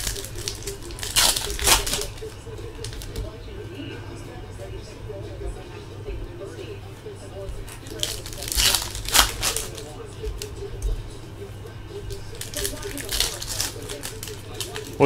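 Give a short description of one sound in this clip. Trading cards rustle and slide against each other as hands handle them, close by.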